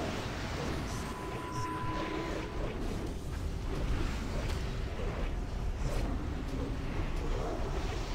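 Spell effects crackle and boom in a game battle.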